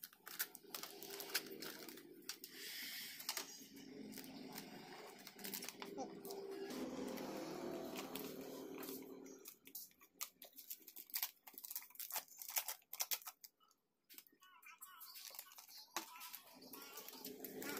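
Plastic film crinkles and rustles as it is handled.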